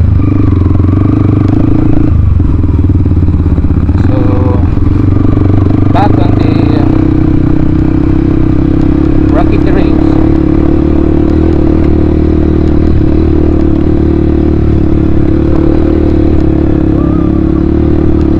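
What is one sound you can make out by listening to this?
A dirt bike engine drones loudly up close, rising and falling as it rides.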